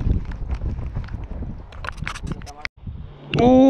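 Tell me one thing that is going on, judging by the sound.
Footsteps crunch and scrape on loose rocks.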